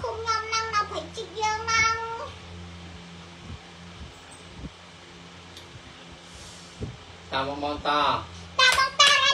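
A young child talks in a high, animated voice close by.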